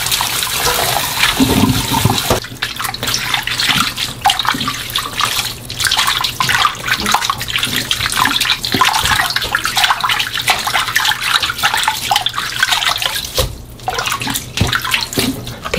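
Hands swish and splash leafy greens in water.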